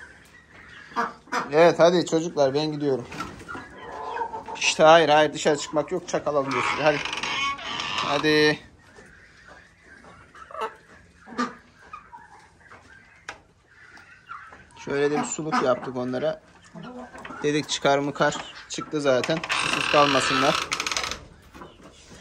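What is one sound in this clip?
Chickens cluck and squawk close by.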